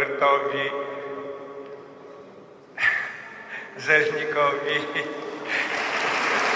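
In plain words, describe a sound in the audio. An elderly man speaks with animation through a microphone in a large echoing hall.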